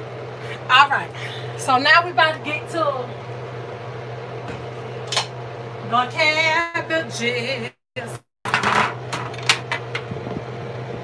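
A metal pot lid clanks.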